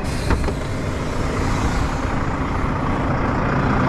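A truck door clicks open.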